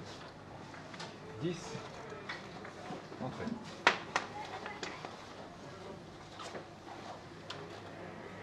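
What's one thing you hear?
Billiard balls click against each other and the cushions.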